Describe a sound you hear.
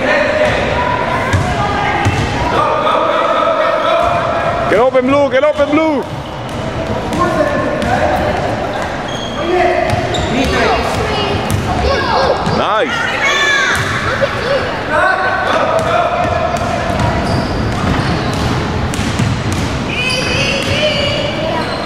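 Young players and spectators shout and call out in a large echoing gym.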